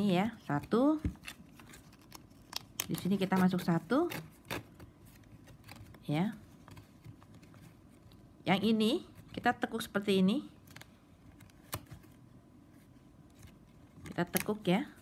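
Stiff plastic straps rustle and click as fingers weave them.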